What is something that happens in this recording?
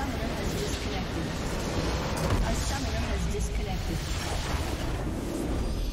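A large structure explodes with a deep boom.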